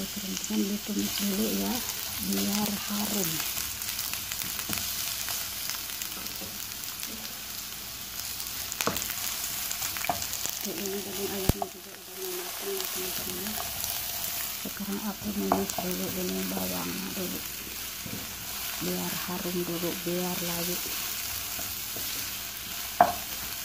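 A wooden spoon scrapes against a pan.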